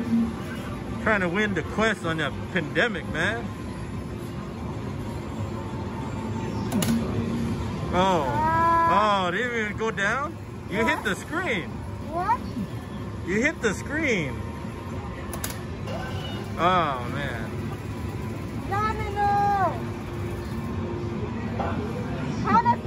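An arcade game machine plays bright electronic jingles and gliding sound effects.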